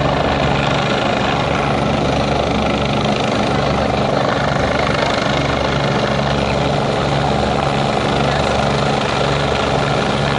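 A helicopter's rotor thumps loudly as it flies low and draws closer.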